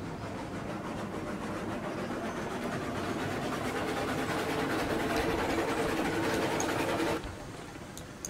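A steam locomotive rumbles and hisses loudly as it rolls along.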